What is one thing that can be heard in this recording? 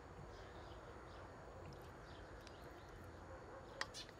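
A wooden spoon pushes stuffing wetly into a bird.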